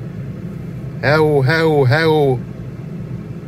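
A car stereo gives out a few short electronic tones.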